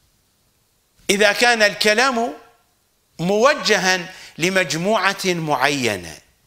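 An older man speaks calmly and clearly into a microphone.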